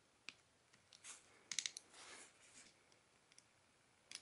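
Fingernails scrape and pry at a phone's casing.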